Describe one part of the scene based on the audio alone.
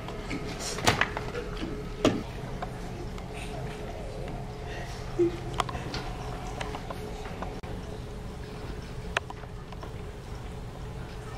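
A crowd of young people chatters and murmurs in a large echoing hall.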